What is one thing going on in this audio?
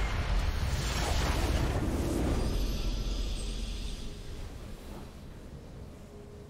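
A triumphant victory fanfare plays and fades.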